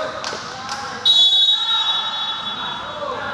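A referee blows a sharp whistle in an echoing hall.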